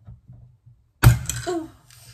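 A glass bottle's marble stopper pops loose with a sharp click.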